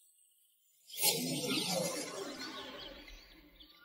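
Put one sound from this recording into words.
A glowing burst of energy whooshes and rumbles.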